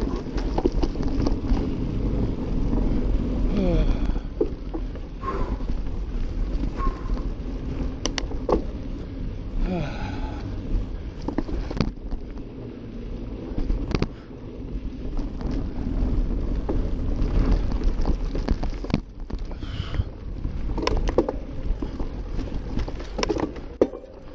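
Wind rumbles steadily past the rider.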